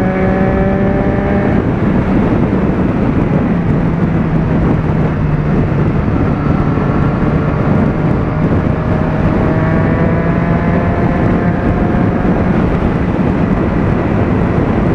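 Wind roars past the rider.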